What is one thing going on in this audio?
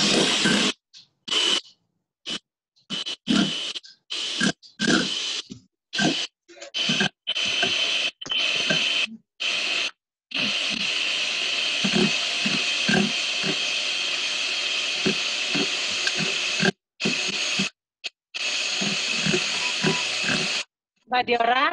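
An electric hand mixer whirs steadily as its beaters whisk in a metal bowl.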